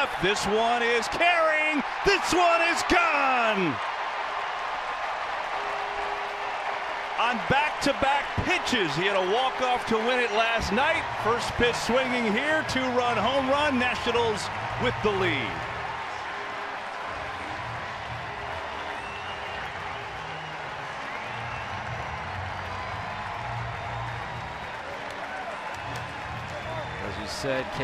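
A large crowd cheers and claps in a ballpark.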